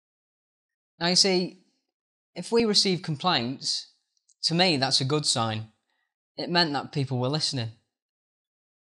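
A young man speaks calmly and close up.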